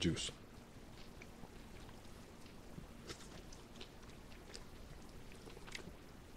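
A man chews food with soft crunching sounds close to a microphone.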